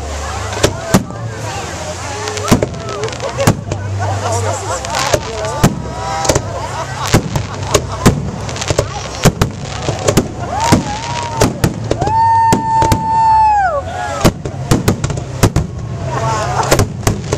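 Aerial firework shells burst with sharp booms.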